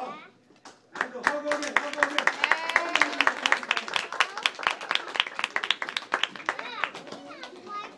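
A group of children clap their hands rapidly together.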